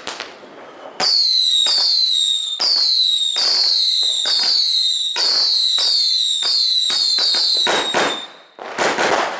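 Fireworks whistle shrilly with falling pitch as they burst.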